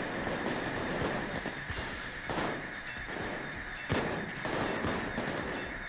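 A shotgun fires several times with sharp bangs.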